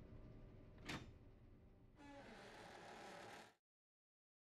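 A heavy door creaks open with a rumble.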